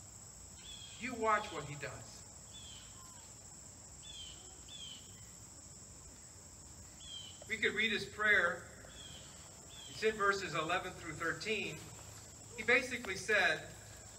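A middle-aged man speaks calmly into a microphone outdoors, with pauses between phrases.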